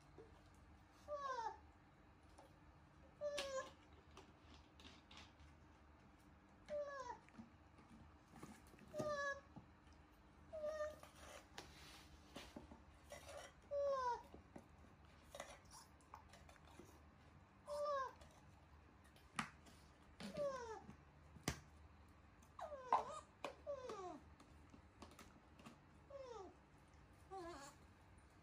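A baby monkey squeaks and whimpers in short falling cries.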